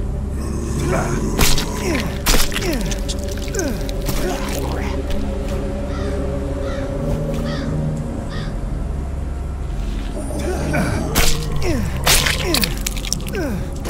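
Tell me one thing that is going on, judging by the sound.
Heavy blows thud in a close scuffle.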